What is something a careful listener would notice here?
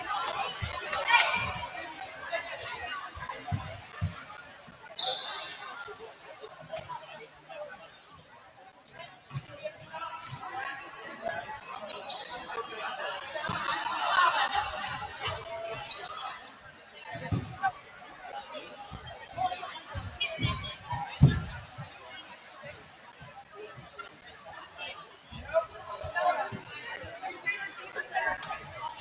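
Young women and spectators chatter and call out in a large echoing gym.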